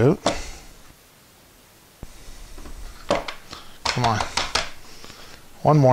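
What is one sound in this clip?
A plastic part clicks and rattles in a man's hands.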